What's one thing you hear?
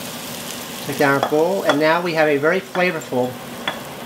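Cooked vegetables tumble from a pan into a bowl.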